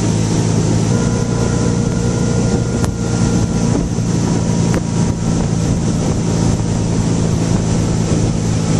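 Water rushes and splashes in the boat's wake.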